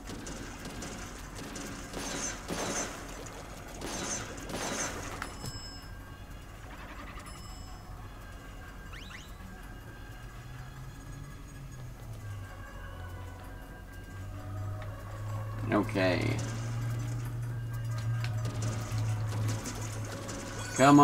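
Video game sound effects splash and whoosh.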